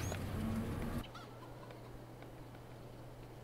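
A tractor engine idles with a low, steady hum.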